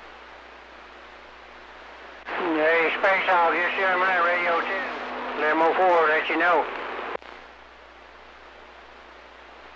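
A radio hisses softly with static.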